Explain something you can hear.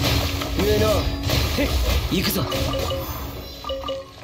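Magic blasts crash and shatter loudly in a fight.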